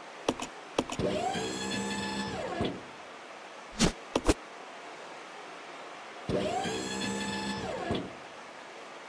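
A forklift's lift motor whirs as the forks rise and lower.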